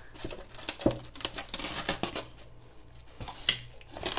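Scissors snip through a plastic bag.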